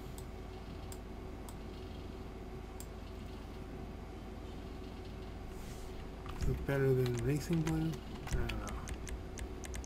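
A game menu ticks with soft clicks as options change.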